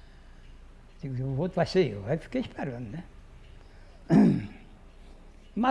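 An elderly man speaks slowly and hoarsely into a close microphone.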